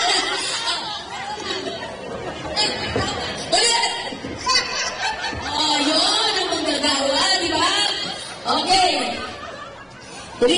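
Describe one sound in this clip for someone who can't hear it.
A man speaks loudly and with animation through a microphone, heard over loudspeakers in a large room.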